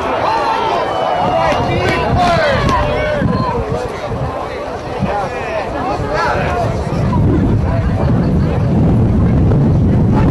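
A crowd cheers and shouts in an outdoor stadium.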